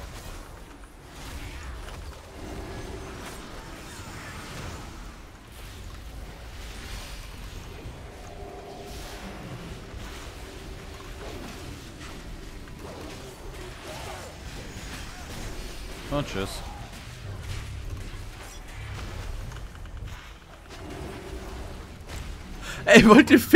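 Game battle effects whoosh and crackle.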